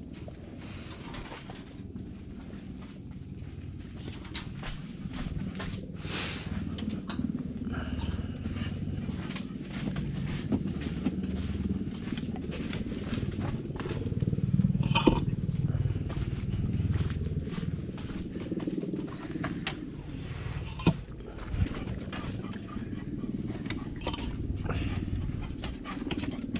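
Metal food bowls clink and scrape as they are picked up and set down.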